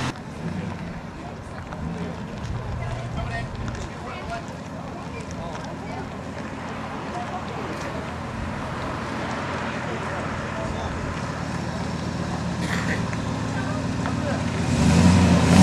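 A large vehicle's engine rumbles as it rolls slowly closer.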